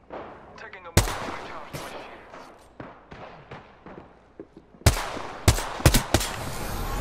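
Gunshots fire in sharp single bursts.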